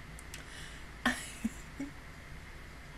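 A young woman laughs softly into a microphone.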